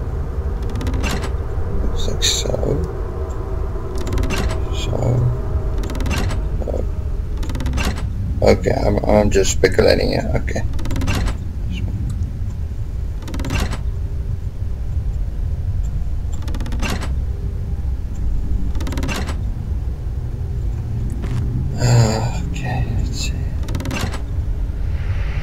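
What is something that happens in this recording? Heavy wooden levers clunk into place one after another.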